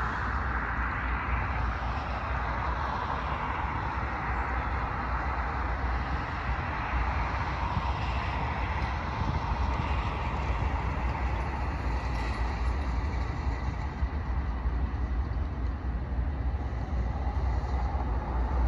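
A distant train engine rumbles as it slowly approaches.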